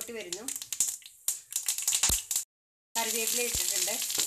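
Oil sizzles and crackles in a hot pan.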